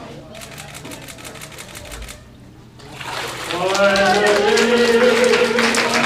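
Water splashes as a person is dipped under and lifted out.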